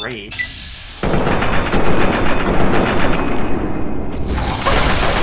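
A large beast roars.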